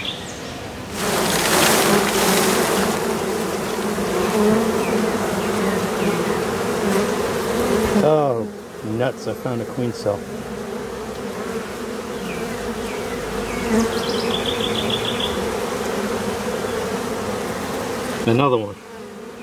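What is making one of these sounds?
A swarm of honeybees buzzes loudly and close by.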